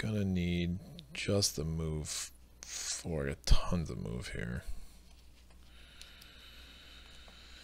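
Game pieces click softly on a tabletop board.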